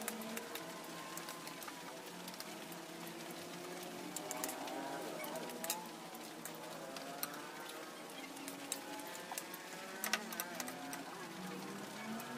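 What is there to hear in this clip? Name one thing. Small objects clink and tap as they are handled.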